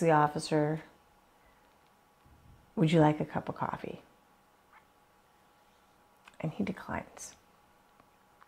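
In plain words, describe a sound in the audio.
A woman talks calmly, close by.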